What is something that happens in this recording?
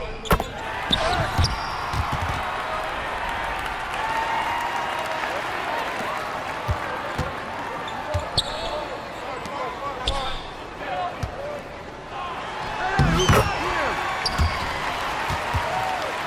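A crowd murmurs and cheers throughout.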